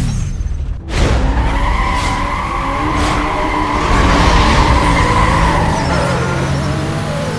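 A car engine roars as it speeds away.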